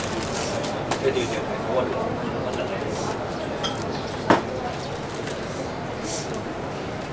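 A crowd murmurs and talks in the background.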